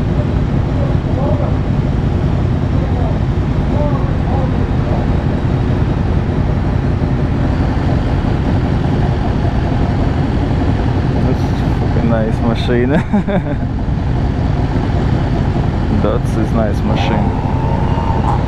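A motorcycle engine idles with a steady low rumble.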